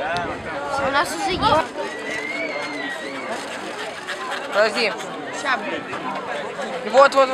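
A crowd murmurs outdoors in the distance.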